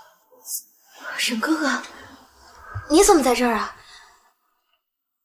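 A young woman speaks with surprise and alarm, close by.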